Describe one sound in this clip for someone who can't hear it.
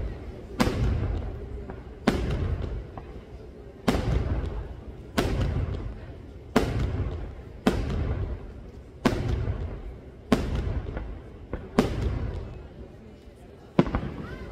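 Fireworks explode in loud booms that echo off the mountains.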